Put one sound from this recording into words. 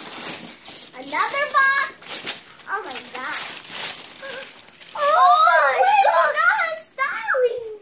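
A young girl talks excitedly in a high voice, close by.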